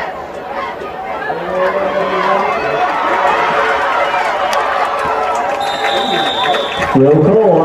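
A large crowd cheers and roars across an open stadium.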